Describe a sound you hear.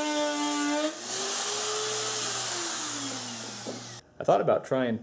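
A router spins down and goes quiet.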